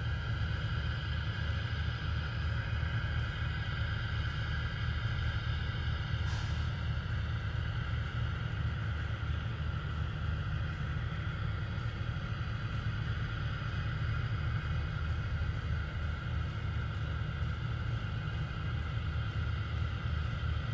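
Gas vents from a rocket on its launch pad with a steady hiss.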